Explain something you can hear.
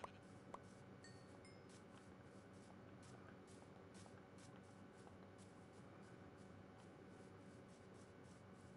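Footsteps crunch steadily on grass at a walking pace.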